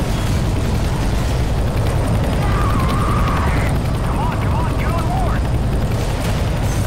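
A helicopter's rotor roars and thumps loudly overhead.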